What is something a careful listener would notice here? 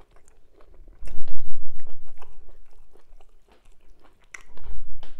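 A woman chews food noisily and close up.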